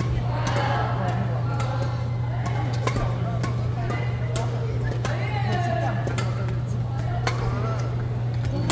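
Several players call out and chatter nearby.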